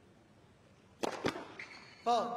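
A tennis racket strikes a ball hard on a serve.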